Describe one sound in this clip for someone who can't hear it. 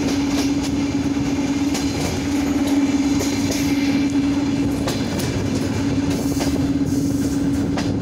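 A passing electric locomotive hums steadily close by.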